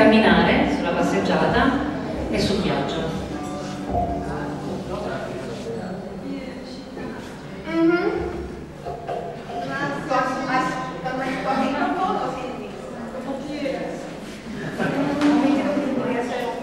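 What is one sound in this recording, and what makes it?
A young woman speaks into a microphone, heard through loudspeakers.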